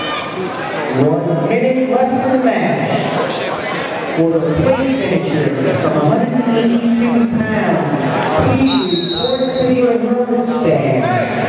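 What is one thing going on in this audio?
A man shouts loudly and excitedly nearby.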